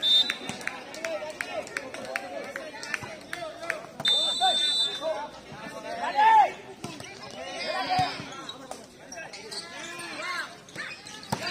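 A crowd of onlookers cheers and shouts.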